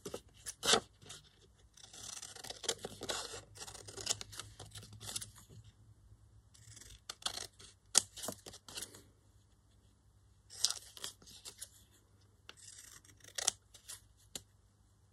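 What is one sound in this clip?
Scissors snip through paper with crisp clicks.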